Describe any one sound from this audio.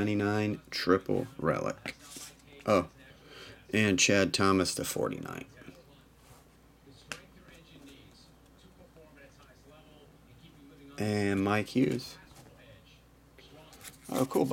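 Cards shuffle and rustle softly between hands.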